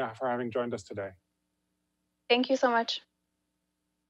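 A woman speaks calmly over a remote call.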